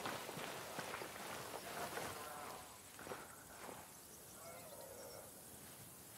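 Tall grass rustles as a soldier crawls through it.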